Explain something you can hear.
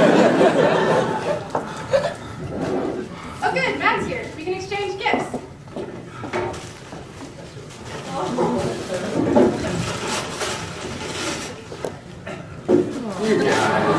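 Young men talk and chatter in a large echoing hall.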